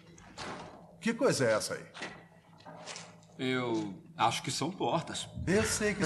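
A young man speaks tensely nearby.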